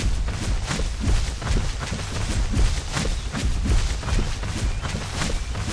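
Heavy footsteps thud on grass in a quick, steady rhythm.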